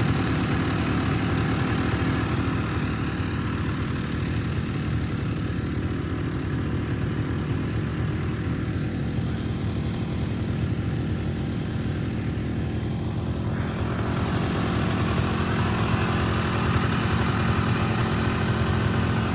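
A snowmobile engine drones steadily at close range.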